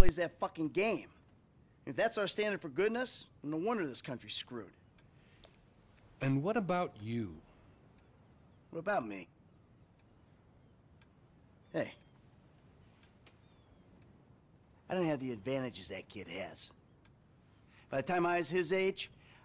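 A man speaks calmly and closely, pausing between phrases.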